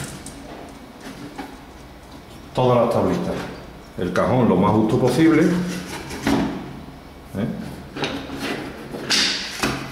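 Plywood pieces knock and clatter together as they are handled.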